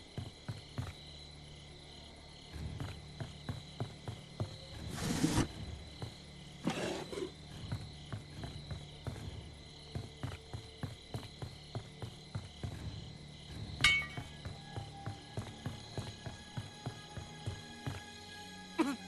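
Footsteps thud steadily on a wooden floor.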